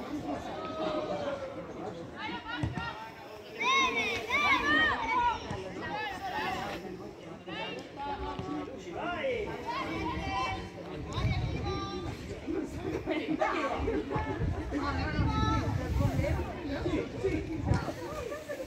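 Young women shout and call out to each other across an open outdoor pitch.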